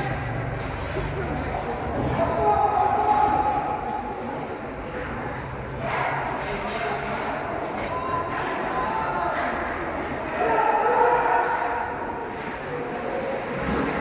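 Skates scrape across the ice in an echoing rink.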